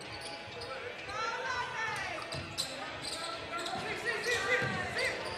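Sneakers squeak sharply in an echoing hall.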